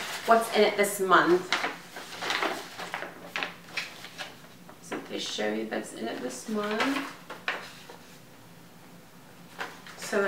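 Paper rustles as a woman handles a booklet.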